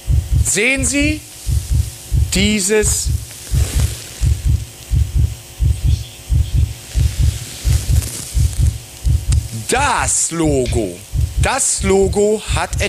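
A middle-aged man speaks with animation through a microphone.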